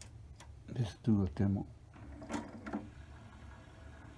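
A button clicks on a disc player.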